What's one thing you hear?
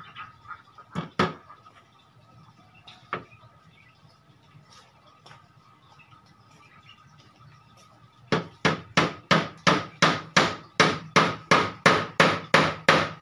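A piece of wood knocks sharply against wood, then clacks in a quick steady rhythm.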